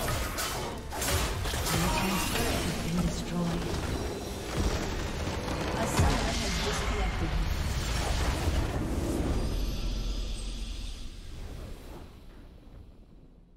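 Magic blasts and explosions crash loudly in a fantasy battle.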